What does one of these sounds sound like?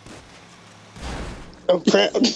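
A truck crashes into another truck with a heavy thud.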